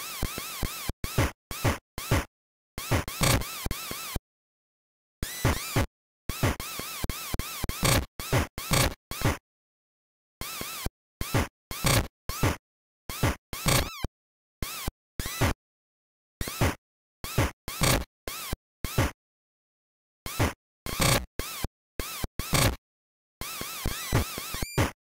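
Electronic hits and punches pop sharply again and again.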